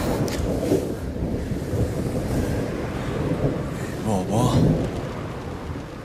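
Rain patters on a car windscreen.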